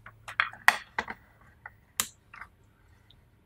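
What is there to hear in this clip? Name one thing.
A plastic device clicks and knocks.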